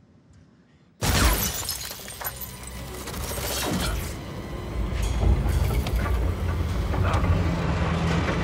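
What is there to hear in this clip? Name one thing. Glass cracks and shatters.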